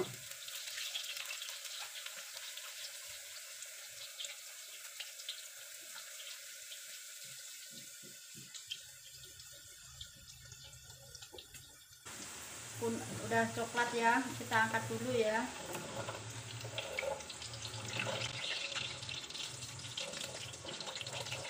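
Oil sizzles and crackles in a hot pan.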